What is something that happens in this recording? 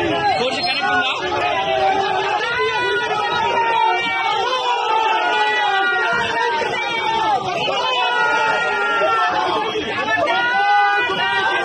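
A crowd of men shout slogans loudly and close by.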